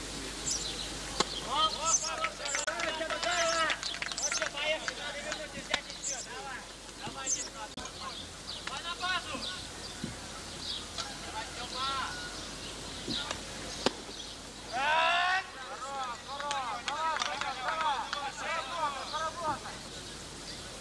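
Men call out and shout to each other outdoors, from a distance.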